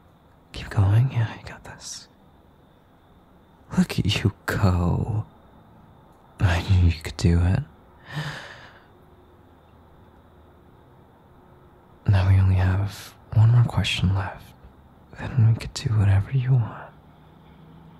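A young man speaks softly and close to the microphone, in short phrases with pauses.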